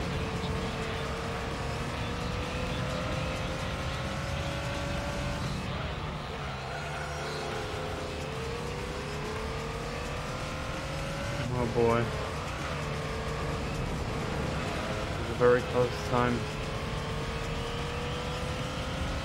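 A racing car engine revs high and shifts gears.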